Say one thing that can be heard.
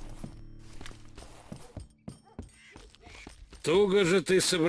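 Footsteps thud on wooden boards and dirt.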